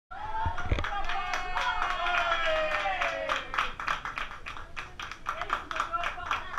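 A small group of people clap their hands.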